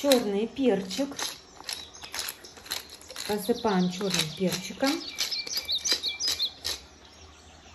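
A spice jar rattles as it is shaken.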